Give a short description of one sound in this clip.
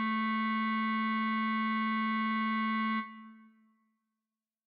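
A low clarinet note is held steadily, then quickly fades away.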